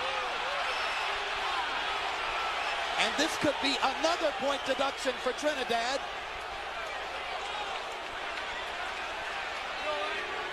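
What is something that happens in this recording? A large crowd murmurs and cheers throughout an echoing arena.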